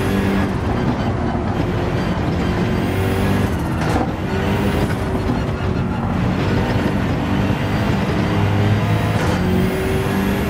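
A racing car engine roars steadily, its pitch rising and dropping with gear changes.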